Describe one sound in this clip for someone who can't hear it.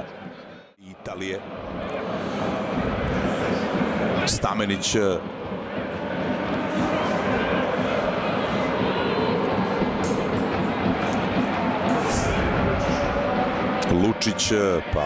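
A stadium crowd roars and chants steadily outdoors.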